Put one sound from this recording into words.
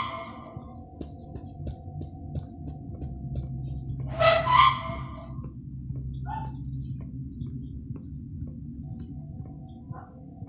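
Footsteps fall steadily on a hard floor.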